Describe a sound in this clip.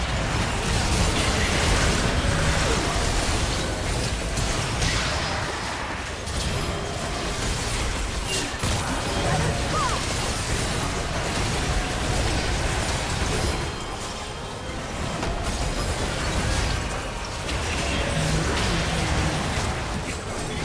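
Magic spells whoosh, crackle and burst in a busy fantasy battle.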